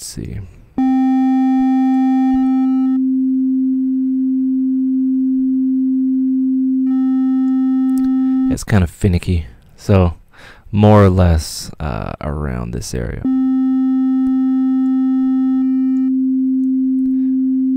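A steady, low electronic tone hums.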